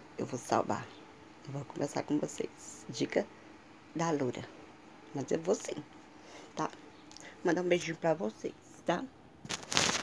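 A woman talks close to a phone microphone with animation.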